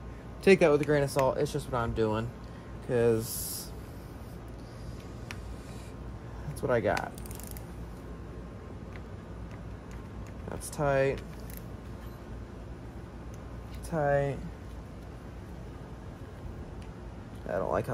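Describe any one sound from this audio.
A ratchet wrench clicks as it turns bolts.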